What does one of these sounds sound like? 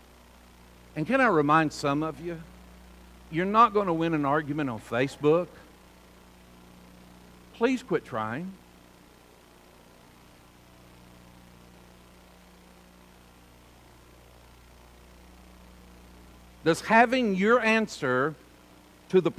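A middle-aged man speaks calmly into a microphone, in short phrases with long pauses.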